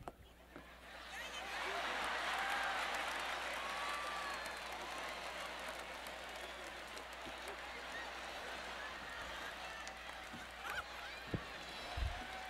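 A large audience laughs and cheers loudly.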